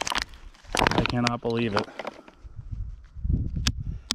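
A plastic water bottle crinkles.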